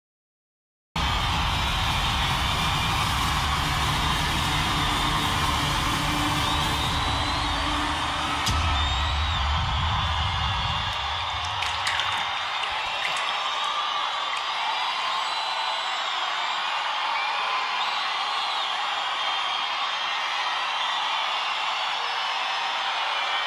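An acoustic guitar strums along.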